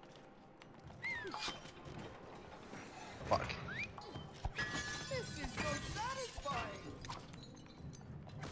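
A man talks with animation into a microphone.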